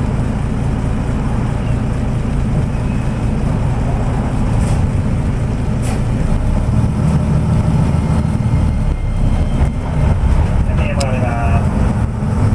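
A tram engine rumbles steadily from inside the tram.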